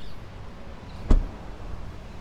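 A car door shuts with a solid thud.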